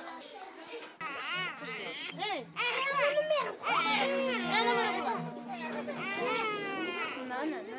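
A crowd of women and children shout and call out loudly nearby.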